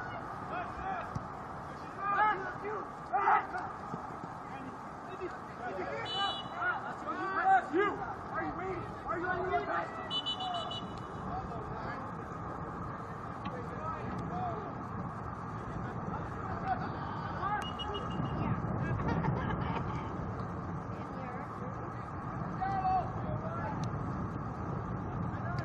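Players shout and call out across an open field, far off.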